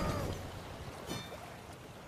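A short game fanfare plays.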